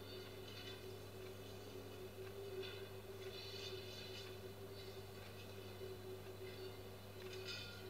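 A heavy truck rolls by, heard faintly through a television speaker.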